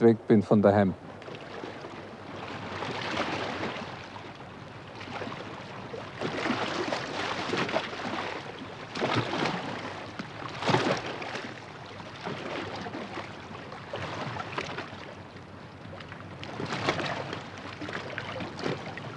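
Small waves wash and lap gently onto a sandy shore in surges.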